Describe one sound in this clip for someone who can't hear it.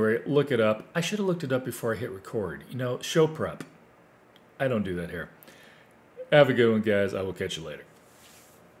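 An older man talks calmly and closely into a microphone.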